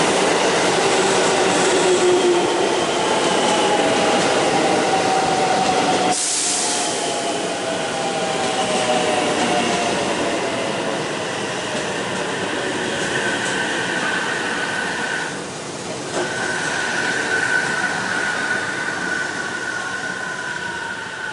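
An electric train rolls slowly alongside the platform.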